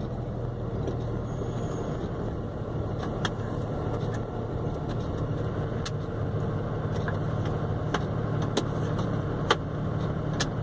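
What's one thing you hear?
A bus engine rumbles steadily close by.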